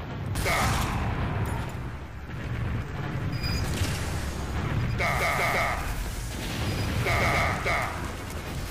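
A shotgun fires with sharp, loud blasts.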